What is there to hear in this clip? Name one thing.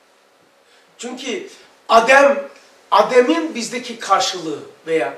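An elderly man speaks calmly into a nearby microphone.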